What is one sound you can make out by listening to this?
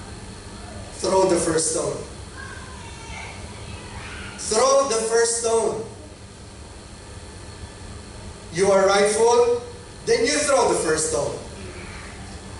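A man preaches through a microphone in short, emphatic phrases with pauses between.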